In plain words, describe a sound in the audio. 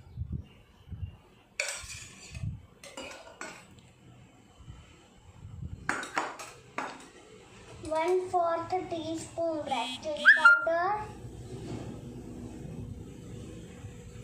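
A metal spoon clinks against a steel bowl.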